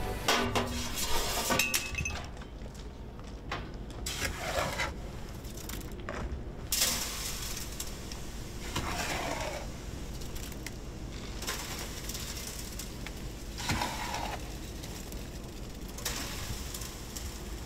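Wet concrete scrapes and slides down a metal chute.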